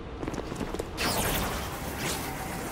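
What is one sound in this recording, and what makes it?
A loud blast explodes with crackling sparks.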